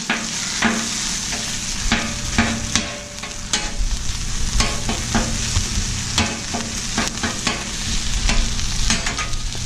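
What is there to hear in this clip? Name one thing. A metal spatula scrapes and taps against a hot griddle.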